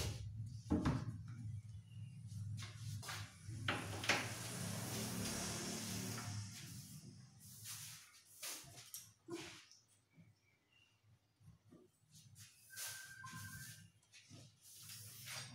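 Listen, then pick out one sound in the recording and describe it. A wooden cabinet door knocks and bumps as it is fitted into place.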